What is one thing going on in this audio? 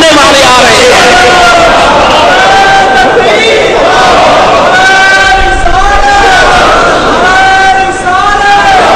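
An elderly man chants in a drawn-out, sung voice through a microphone.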